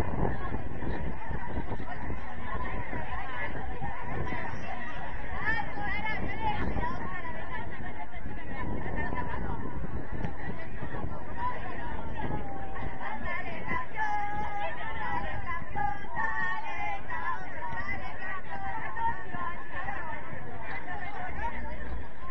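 Young men shout and call to each other across an open outdoor pitch.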